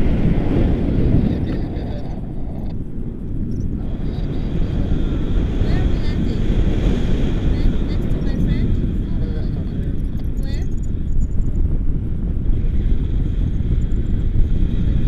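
Strong wind rushes and buffets loudly throughout.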